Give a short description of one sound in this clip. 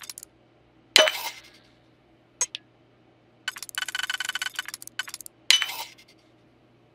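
A game's lock gives a loud sharp snap.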